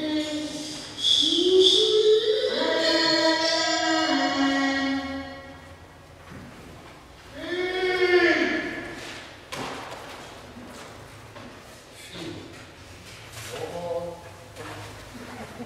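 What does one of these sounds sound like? A woman sings long, gliding notes in a large echoing hall.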